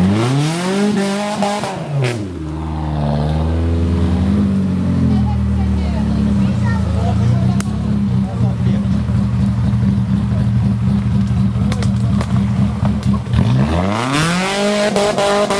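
An off-road vehicle's engine revs hard, rising and falling in pitch.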